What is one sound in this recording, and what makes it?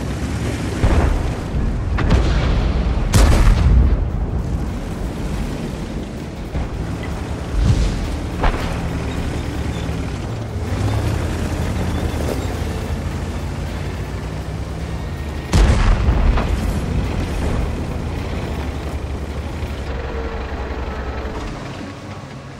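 A tank engine rumbles low and steady as the tank drives.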